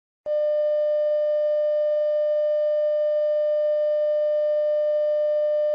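A steady test tone sounds without a break.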